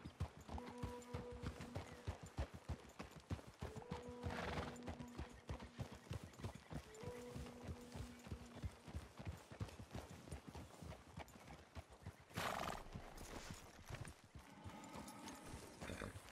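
Horse hooves clop steadily along a dirt path.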